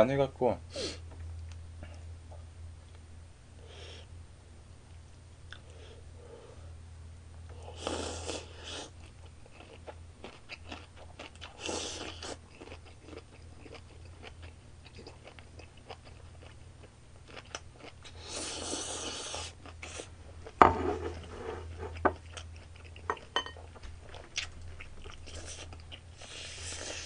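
A young man chews food with wet smacking noises.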